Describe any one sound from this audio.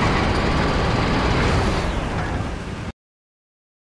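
Heavy tank engines rumble steadily.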